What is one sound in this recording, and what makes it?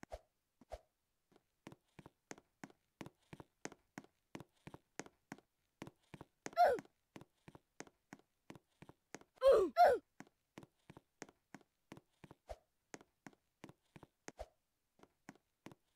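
Light footsteps patter quickly and steadily.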